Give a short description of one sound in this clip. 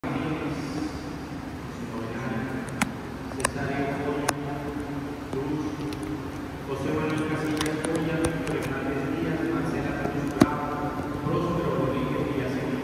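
A man chants through a loudspeaker in a large echoing hall.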